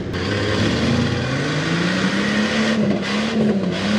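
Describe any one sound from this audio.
Mud splashes as a truck ploughs through it.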